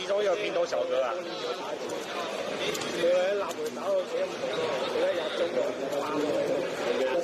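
Arcade buttons click and clack rapidly under a player's fingers.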